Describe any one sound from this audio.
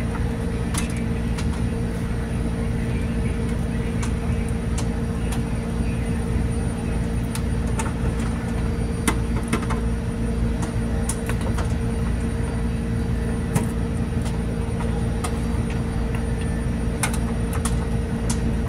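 Metal parts click and knock now and then.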